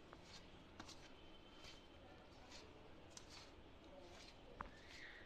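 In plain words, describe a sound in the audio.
A hand rustles and scrapes through dry flour in a metal bowl.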